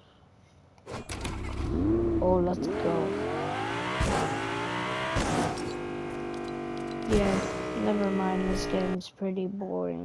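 A car engine roars and revs up as it speeds along.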